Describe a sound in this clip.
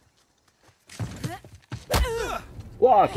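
Fists land heavy punches in a scuffle.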